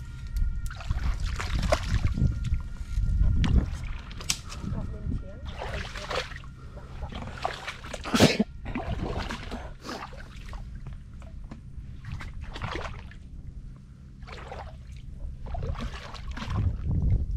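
Boots slosh and splash through shallow water.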